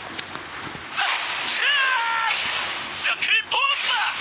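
Magic blasts whoosh and chime loudly.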